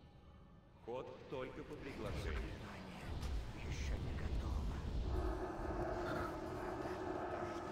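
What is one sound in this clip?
Magic spells whoosh and crackle during a fight.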